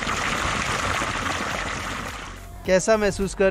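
Water gushes and splashes close by.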